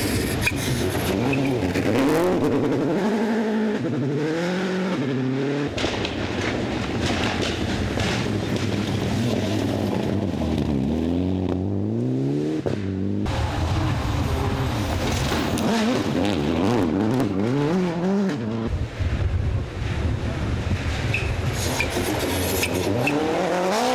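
Gravel sprays and crunches under spinning tyres.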